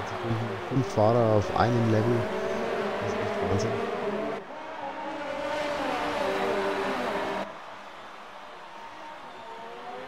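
Racing car engines scream at high revs and rise and fall in pitch as cars pass.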